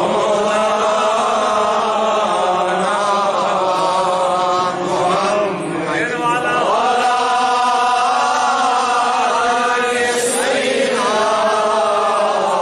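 A man chants in a long, melodic voice through a loudspeaker.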